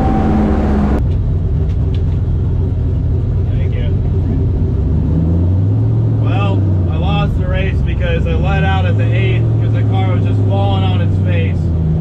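A car engine idles with a low rumble.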